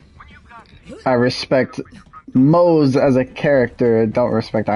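A man speaks calmly over a radio.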